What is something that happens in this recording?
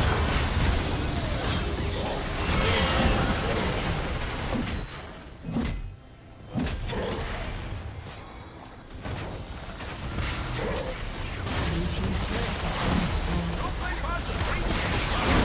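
Fantasy battle sound effects crackle and burst in quick succession.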